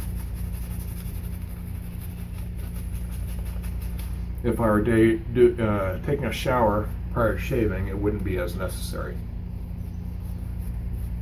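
A shaving brush swishes lather on a man's face.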